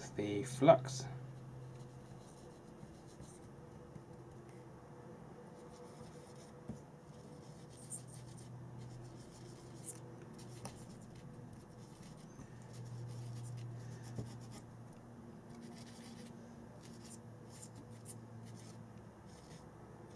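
A marker pen scratches lightly on small metal caps.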